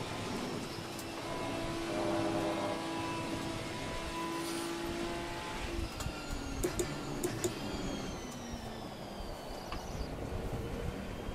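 A racing car engine hums steadily, then drops in pitch as the car slows down.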